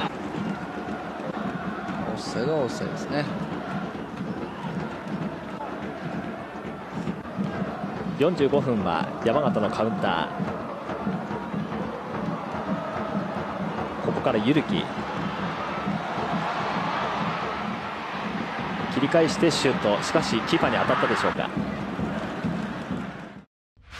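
A large stadium crowd murmurs steadily and roars as the ball nears the goal.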